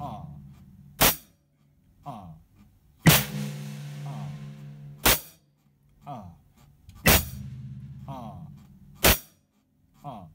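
A snare drum cracks sharply.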